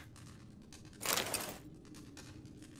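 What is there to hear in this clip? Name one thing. Paper pages rustle as a book opens.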